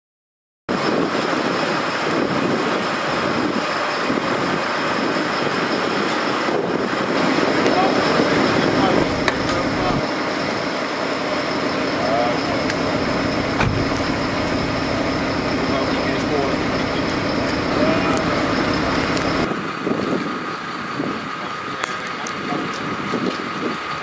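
A fire engine idles with a steady, low rumble nearby.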